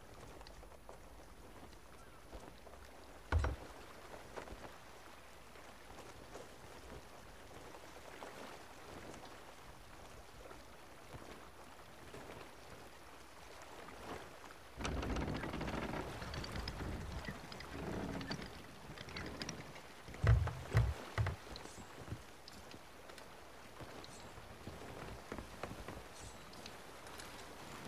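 Wind blows across the open sea.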